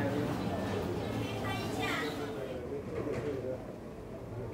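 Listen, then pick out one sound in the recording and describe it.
Several people talk indistinctly in a large echoing hall.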